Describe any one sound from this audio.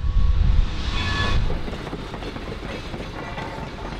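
A diesel locomotive rumbles past.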